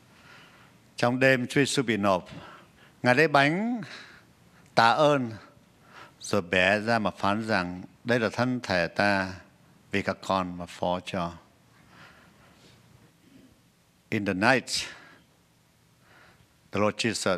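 A man speaks calmly into a microphone, in bursts with pauses.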